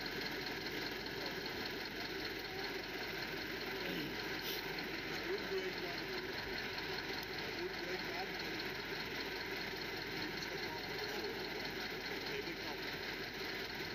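Tractor engines idle steadily nearby.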